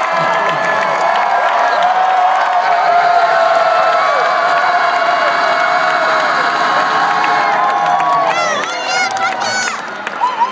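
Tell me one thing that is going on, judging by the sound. An audience claps along.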